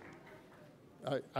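An older man begins speaking into a microphone.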